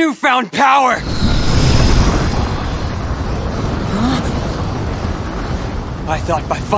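A deep, rumbling surge of dark energy roars steadily.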